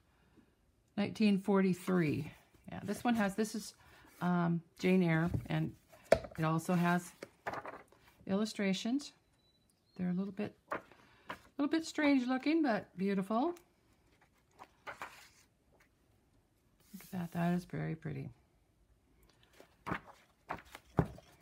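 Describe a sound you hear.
Book pages rustle and flip as they are turned.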